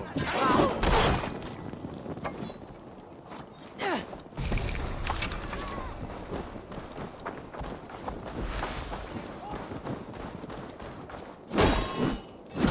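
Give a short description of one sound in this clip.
Footsteps run over dirt and grass.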